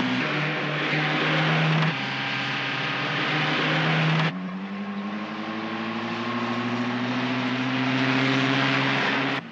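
A vehicle engine roars steadily while driving.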